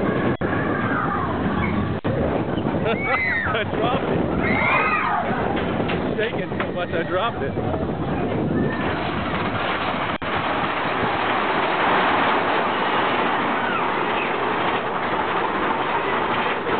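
A roller coaster rumbles and rattles loudly along its track.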